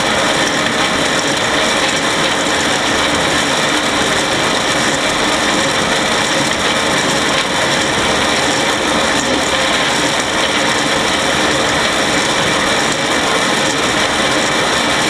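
A baler's machinery clatters and rattles loudly and steadily up close.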